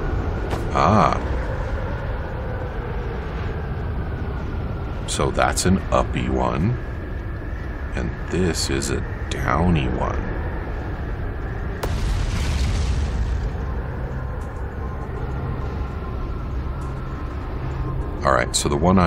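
A man talks through a headset microphone, close up and with animation.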